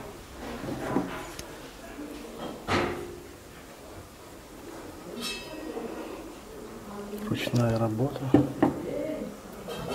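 A wooden carving knocks against a wooden table as it is picked up and set down.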